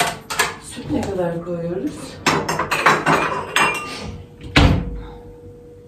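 A cabinet door opens and bangs shut.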